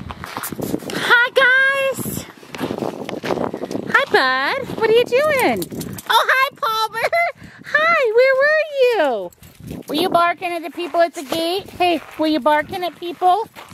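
A dog whines and yelps excitedly close by.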